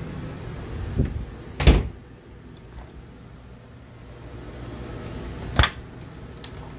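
A refrigerator door thumps and clicks open.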